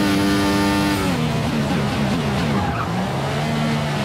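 A racing car engine drops in pitch as the car brakes and shifts down through the gears.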